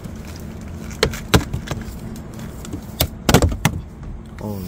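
A hard plastic cover snaps off with a sharp crack.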